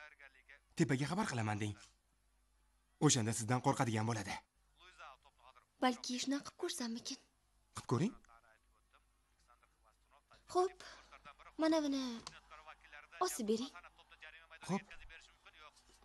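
A young man talks with animation nearby.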